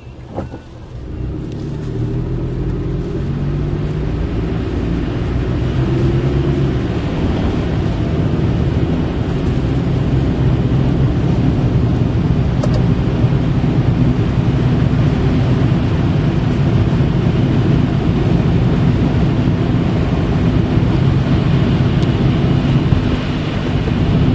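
Tyres roll and hiss over a wet, slushy road.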